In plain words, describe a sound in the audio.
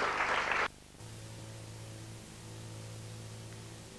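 A violin plays a soft, sustained note.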